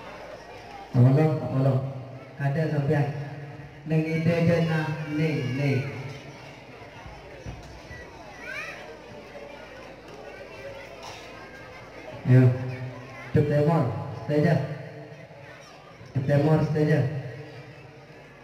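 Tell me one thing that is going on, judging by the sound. A boy recites loudly into a microphone over a loudspeaker, in a large echoing space.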